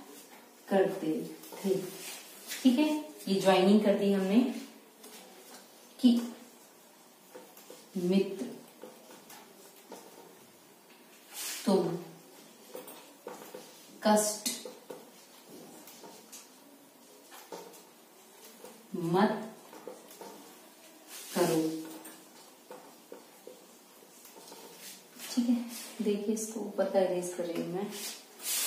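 A woman speaks in short explaining phrases, close by.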